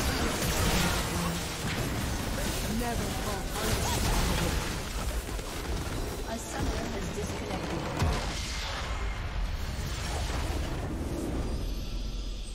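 Game battle effects crackle and boom in a dense, busy clash.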